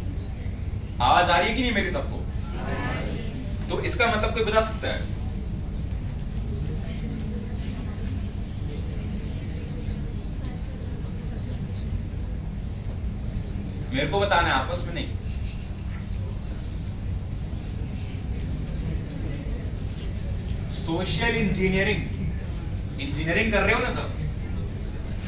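A young man speaks in short bursts in a room with some echo.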